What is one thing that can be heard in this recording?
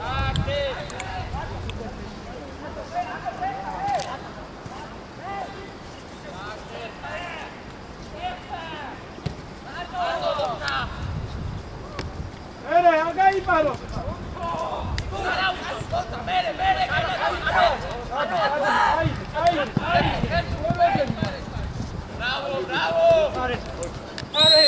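Young men shout to one another far off across an open outdoor field.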